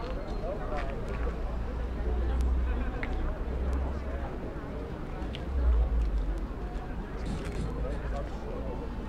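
Men talk at a distance in a small crowd.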